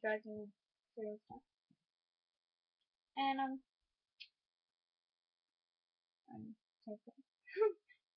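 A young girl speaks casually in short bursts, close to a microphone.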